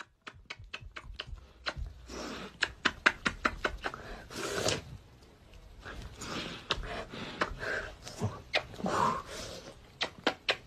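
A woman plants quick, smacking kisses close by.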